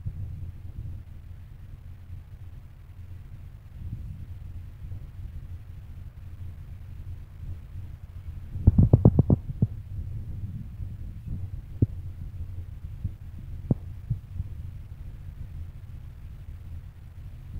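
Cloth rustles and flaps as a long scarf is wound around a head.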